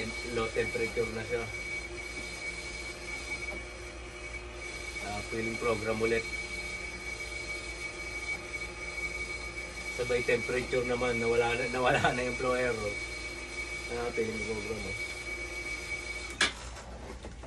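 A dialysis machine sounds a steady alarm tone.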